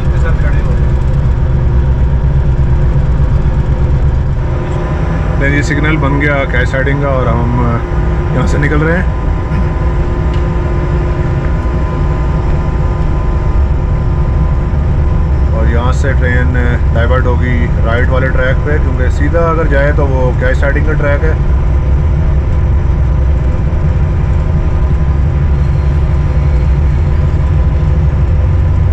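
Train wheels clatter along the rails.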